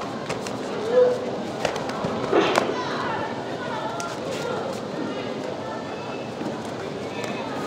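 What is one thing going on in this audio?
Taekwondo kicks thud against padded chest protectors.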